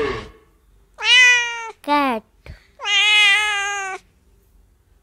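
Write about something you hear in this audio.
A cat meows repeatedly.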